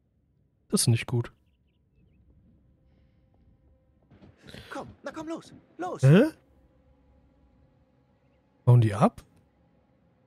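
A young woman speaks softly in short phrases.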